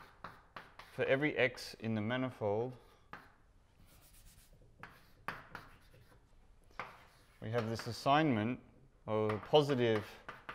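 A man speaks calmly in a slightly echoing room.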